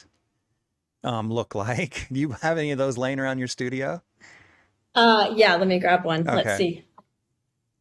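A woman talks cheerfully over an online call.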